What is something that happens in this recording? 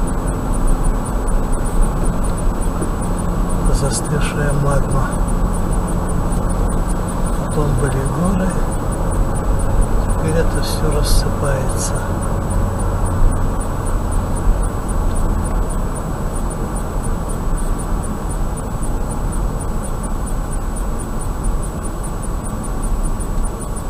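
A car drives steadily along a road with a low rumble of tyres and engine.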